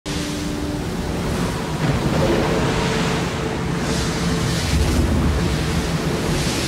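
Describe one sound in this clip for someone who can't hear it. Rough sea waves roll and crash loudly.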